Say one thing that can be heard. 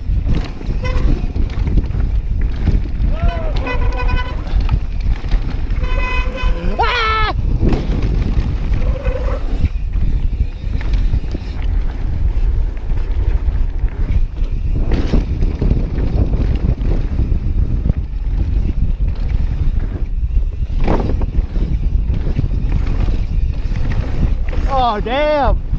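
A bicycle rattles over bumps.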